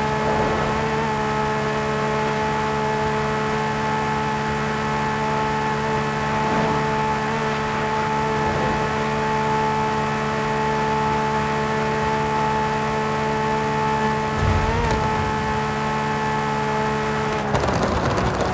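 A racing car engine drones steadily at high revs.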